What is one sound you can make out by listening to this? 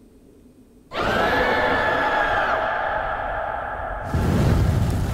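A fire flares up with a roaring whoosh.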